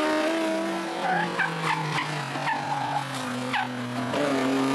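A racing car engine crackles and pops as it shifts gears.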